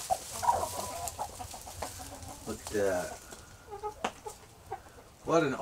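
Hens cluck and squawk close by.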